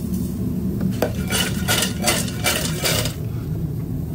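Fries rustle and scrape in a metal bowl as it is tossed.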